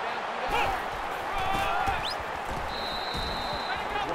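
Football players collide with thuds during a tackle.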